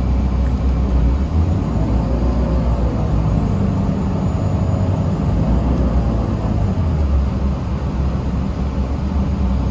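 A bus engine rumbles steadily from inside the cabin.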